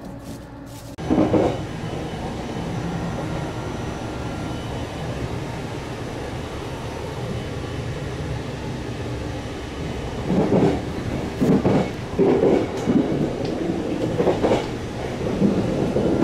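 A train rumbles steadily from inside a carriage.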